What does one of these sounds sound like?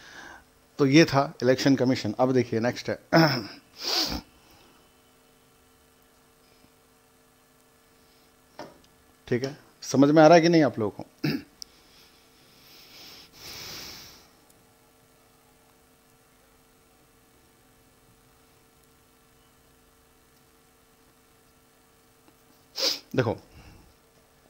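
A man speaks calmly and clearly into a headset microphone, in short bursts with long pauses.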